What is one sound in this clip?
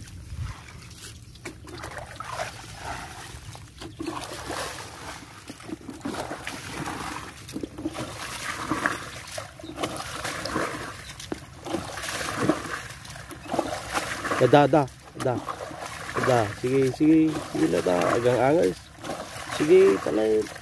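Water splashes in a shallow stream.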